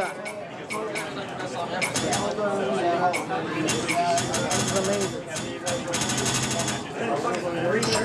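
Loud electronic dance music plays from an arcade machine's speakers.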